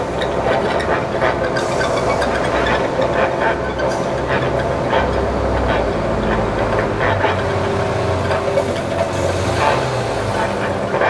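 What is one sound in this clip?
A violin plays a melody outdoors.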